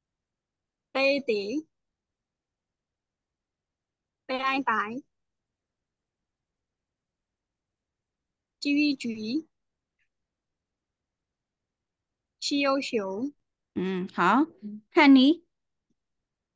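A young woman pronounces short syllables clearly over an online call, pausing between them.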